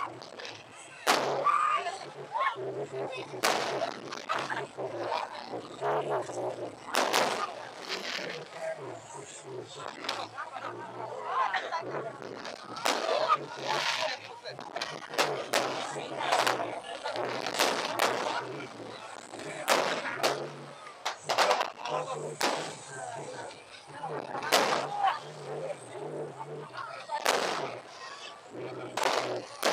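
Fireworks crackle and sizzle after bursting.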